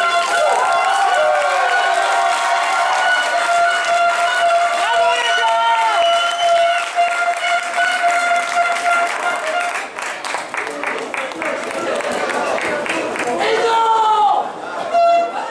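A crowd of men chants and sings loudly outdoors.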